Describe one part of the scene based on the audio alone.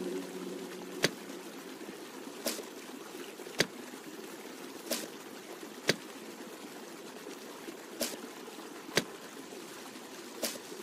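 Wooden boards knock softly into place, one after another.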